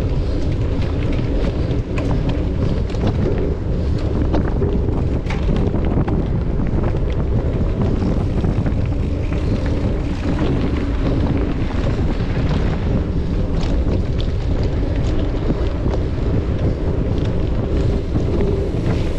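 Wind rumbles steadily past the rider.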